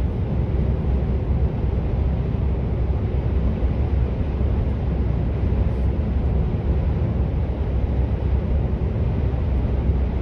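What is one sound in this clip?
A vehicle's engine hums steadily.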